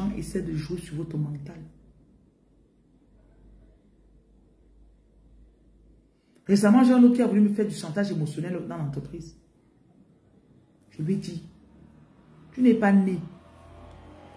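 A woman speaks close to a phone microphone, with animation and pauses.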